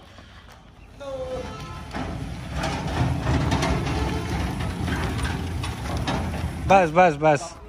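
Metal wheels roll and scrape over gravelly ground.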